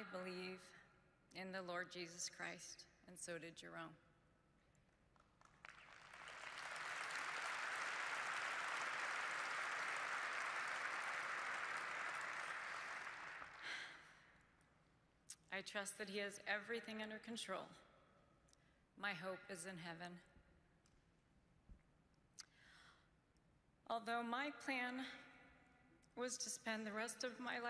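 A woman speaks calmly and with emotion into a microphone in a large hall.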